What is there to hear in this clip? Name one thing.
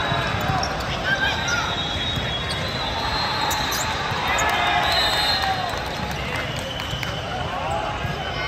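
A volleyball thuds as it is struck.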